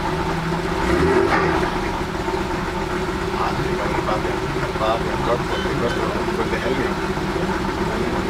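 A car engine idles with a steady low rumble, heard from inside the car.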